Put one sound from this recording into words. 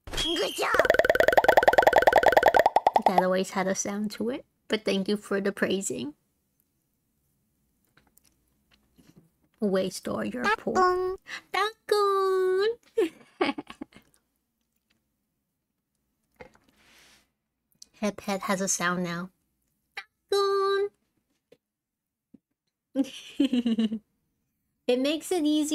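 A young woman talks animatedly into a close microphone, with pauses.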